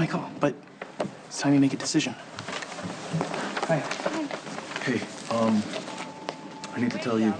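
A man answers calmly close by.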